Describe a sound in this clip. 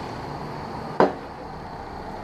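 A ceramic cup is set down on a wooden table with a knock.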